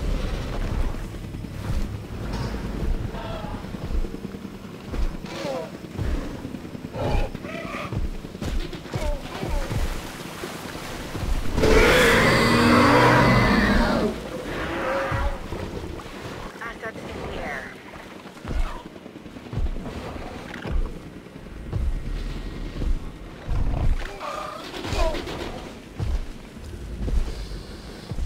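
Heavy footsteps thud steadily on the ground.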